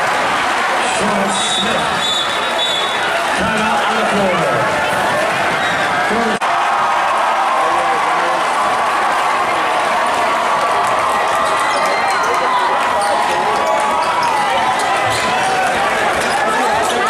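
A large crowd cheers and shouts loudly in an echoing gym.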